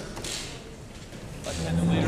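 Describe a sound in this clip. A young man starts to speak in a large echoing hall.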